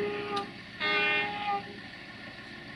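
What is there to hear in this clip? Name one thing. A locomotive horn blares in two short blasts.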